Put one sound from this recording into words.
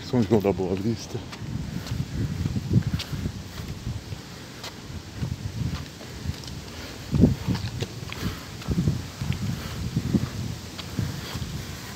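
Footsteps tread on a paved sidewalk.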